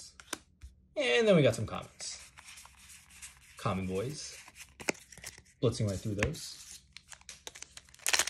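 Playing cards slide and flick against each other, close by.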